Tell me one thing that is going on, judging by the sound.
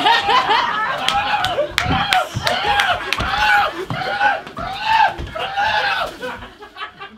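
A man sings loudly with animation on a stage.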